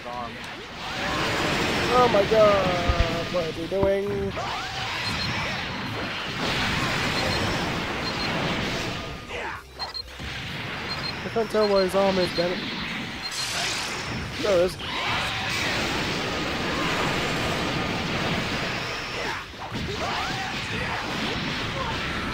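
Energy blasts roar and crackle in a fight.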